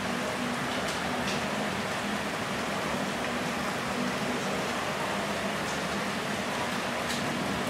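Distant voices of shoppers murmur faintly through a large echoing hall.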